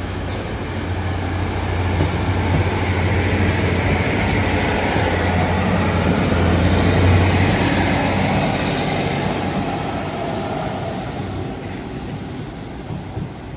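A diesel train rumbles past close by and fades into the distance.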